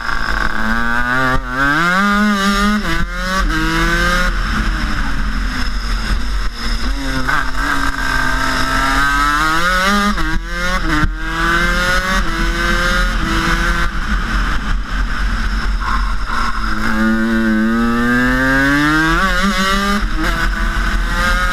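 A kart engine buzzes loudly close by, revving up and down through the bends.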